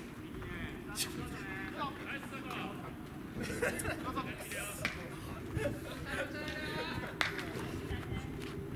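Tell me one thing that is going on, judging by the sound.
Baseball fielders, young men, call out to each other across an open outdoor field.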